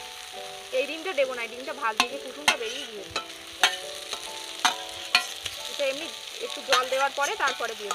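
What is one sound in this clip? Eggs tumble and knock into a metal wok.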